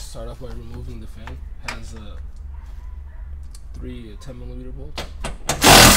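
A ratchet wrench clicks as a bolt is turned.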